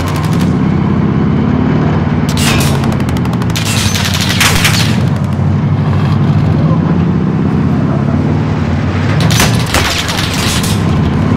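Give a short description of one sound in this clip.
A heavy truck engine roars steadily.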